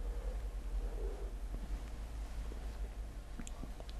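A cup is set down on a hard surface with a light knock.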